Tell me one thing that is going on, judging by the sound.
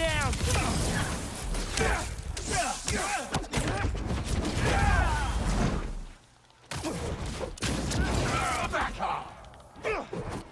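Energy blasts whoosh and crackle.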